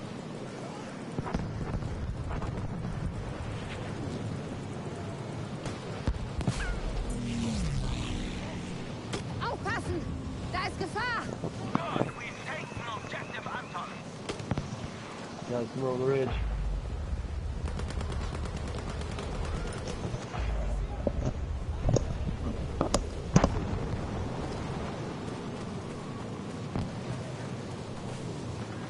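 Wind roars steadily in a snowstorm.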